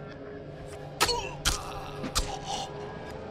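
A sudden scuffle ends with heavy thuds.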